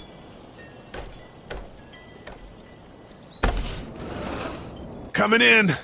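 A sliding glass door rattles and slides open.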